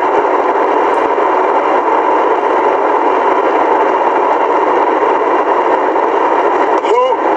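A vehicle engine hums steadily inside the cab.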